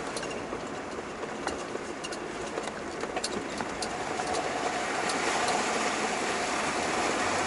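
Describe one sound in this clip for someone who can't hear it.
Water rushes and splashes against a vehicle driving through a river.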